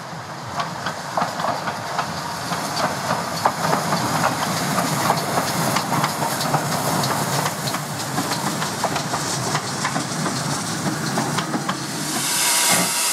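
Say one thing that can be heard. A train rolls past on the rails, wheels clattering steadily.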